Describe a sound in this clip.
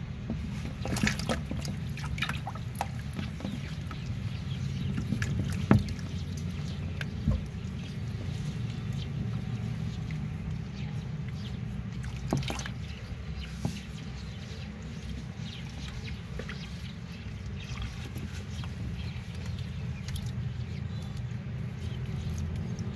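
A hand bumps and rustles against a plastic tub.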